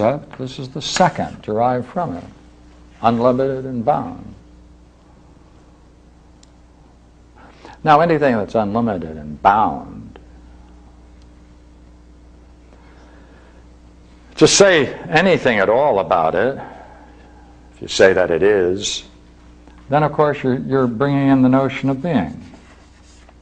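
An elderly man lectures calmly, with pauses, in a room with a slight echo.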